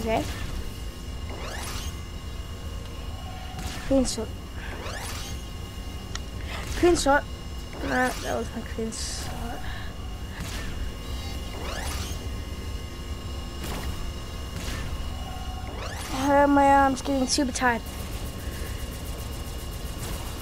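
Laser guns fire in rapid bursts.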